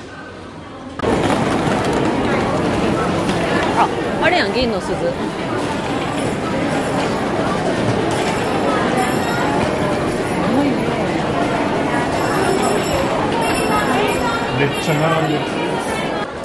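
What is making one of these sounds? A crowd murmurs in a busy, echoing hall.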